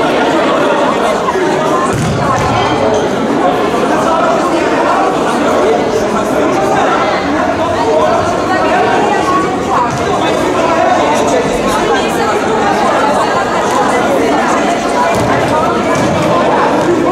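Many voices chatter and shout in a large echoing hall.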